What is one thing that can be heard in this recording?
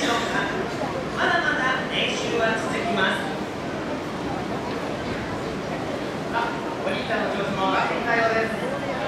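A young woman speaks brightly through a loudspeaker.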